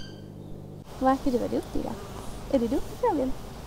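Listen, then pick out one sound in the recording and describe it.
A woman speaks softly close by.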